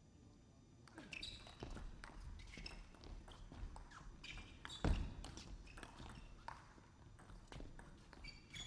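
A table tennis ball clicks back and forth off bats and the table in a quick rally.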